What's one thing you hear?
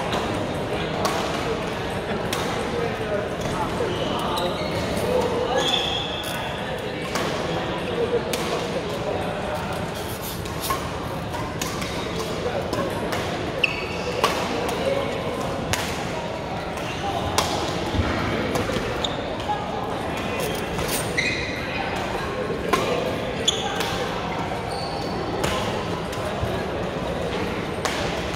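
Shuttlecocks are struck with rackets, giving sharp pops again and again.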